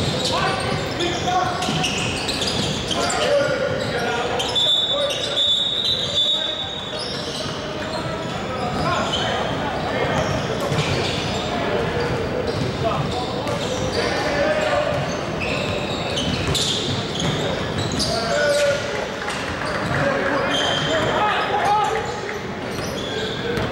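Young players and spectators call out and chatter nearby.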